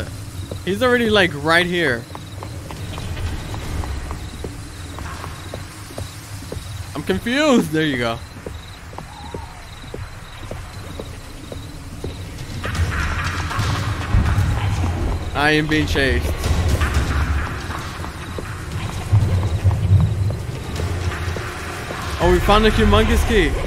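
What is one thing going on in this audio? A young man talks in short, animated bursts close to a microphone.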